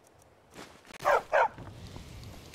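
A dog barks twice.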